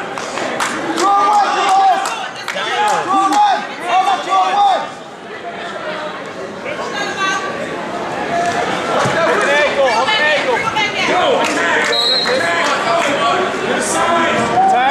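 Spectators shout and cheer loudly in an echoing gym.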